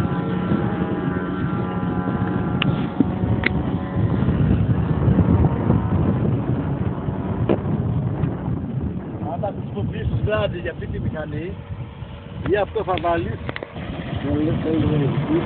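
A jet plane roars overhead, its engine droning steadily.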